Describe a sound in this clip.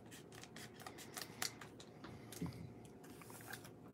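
Scissors snip through a plastic wrapper.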